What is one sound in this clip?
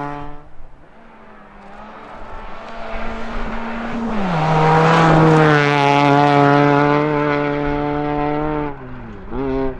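A rally car engine approaches, roars loudly and shifts gear close by.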